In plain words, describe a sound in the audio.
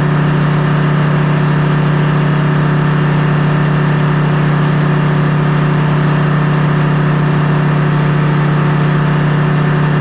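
A sawmill engine runs with a loud, steady drone.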